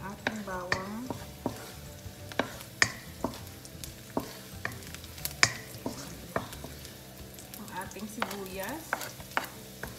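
A wooden spatula knocks and scrapes against a pan.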